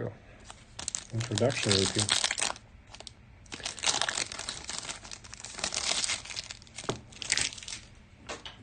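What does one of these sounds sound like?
A plastic wrapper crinkles and rustles as it is torn open.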